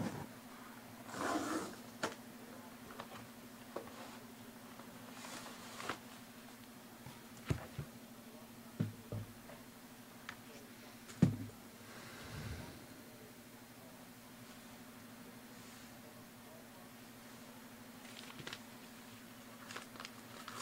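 Paper envelopes rustle and crinkle under handling fingers.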